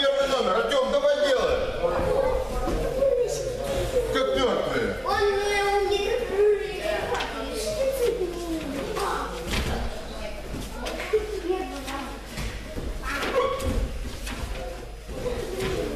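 A body thuds onto a mat.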